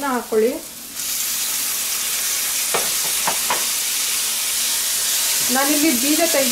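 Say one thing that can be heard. Chopped tomatoes drop into a hot pan with a louder sizzle.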